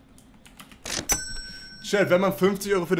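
A payment terminal beeps.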